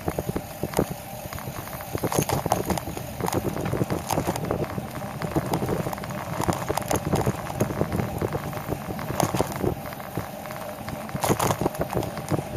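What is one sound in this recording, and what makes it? Tyres roll steadily over asphalt.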